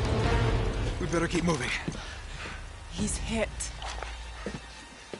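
A young woman speaks urgently, close by.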